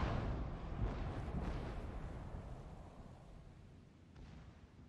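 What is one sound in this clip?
A deep explosion rumbles and slowly fades.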